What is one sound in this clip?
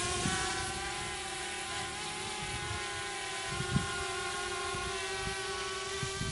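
A drone hums steadily nearby.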